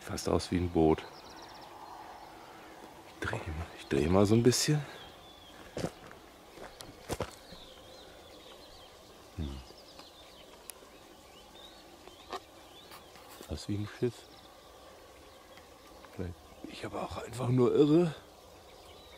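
An elderly man talks calmly close by, outdoors.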